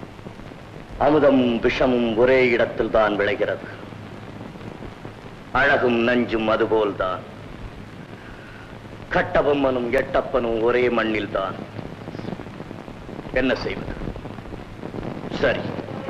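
A man sings a slow, prayerful melody with a deep, wavering voice.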